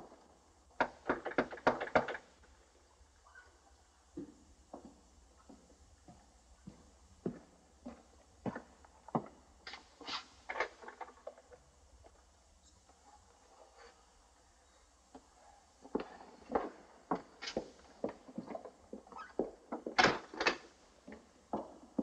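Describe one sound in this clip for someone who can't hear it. Boots thud and clomp on a wooden floor.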